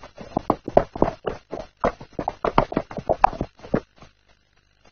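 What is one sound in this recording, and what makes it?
Hooves clop on stony ground as donkeys walk.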